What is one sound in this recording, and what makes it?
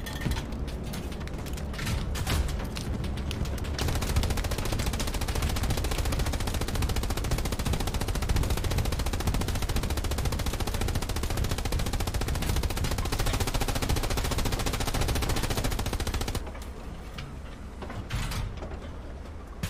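A heavy tank engine rumbles steadily nearby.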